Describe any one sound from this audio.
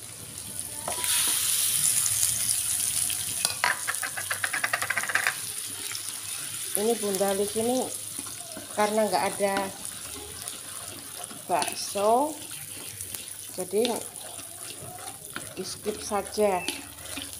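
Eggs sizzle and crackle in hot oil.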